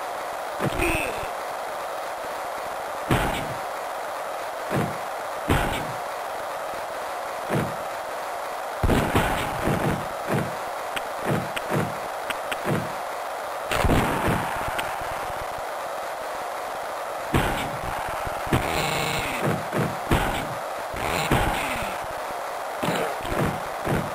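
Hockey sticks strike a puck with short, sharp smacks.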